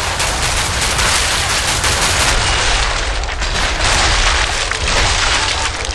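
Creatures shriek and snarl close by.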